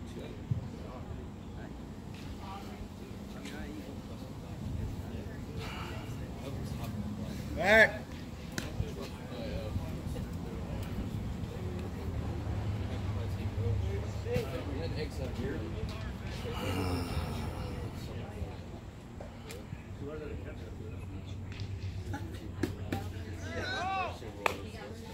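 A baseball smacks into a catcher's mitt.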